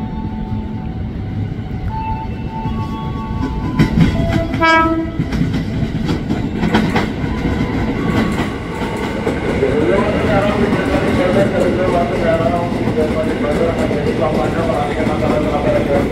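An electric train approaches and rumbles past close by, growing louder.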